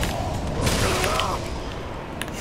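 Fire roars and crackles as a burst of flame erupts.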